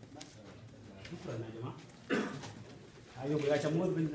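A man speaks loudly to a large crowd.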